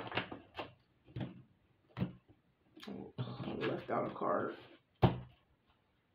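Cards slap softly onto a table.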